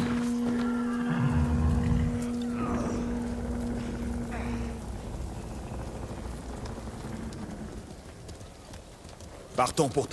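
A horse's hooves clop slowly on packed earth.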